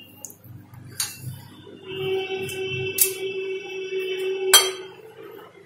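A metal whisk clinks sharply against a glass bowl.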